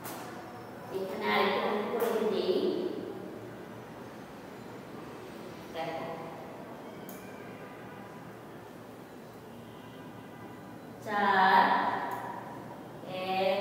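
A woman speaks aloud in short bursts.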